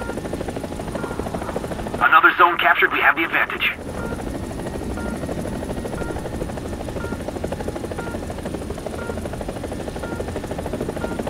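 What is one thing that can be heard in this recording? A helicopter's rotor blades thump steadily overhead.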